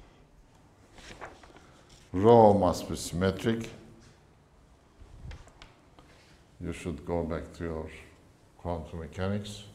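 An elderly man speaks, lecturing.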